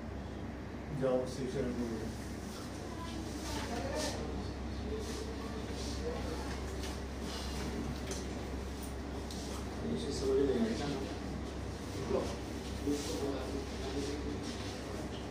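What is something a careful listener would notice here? A man talks calmly.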